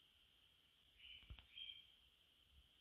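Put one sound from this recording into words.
Paper crinkles softly as a small lizard crawls over it.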